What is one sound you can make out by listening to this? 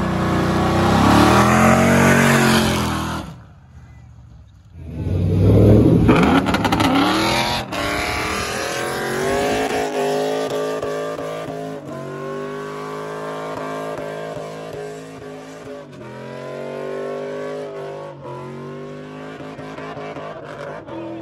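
A car engine roars and revs hard up close.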